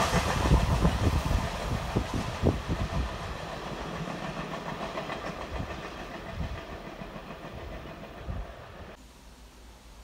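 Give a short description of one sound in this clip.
A freight train rumbles away along the tracks.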